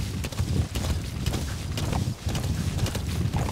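A horse gallops, its hooves thudding on dirt.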